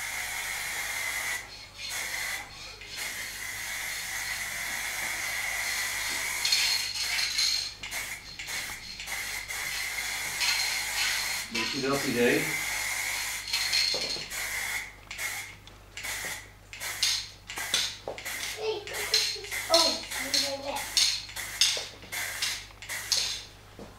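An aerosol can hisses in short and long sprays.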